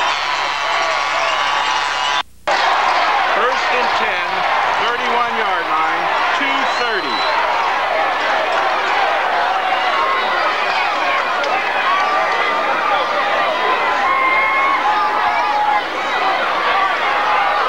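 A large crowd chatters and cheers outdoors at a distance.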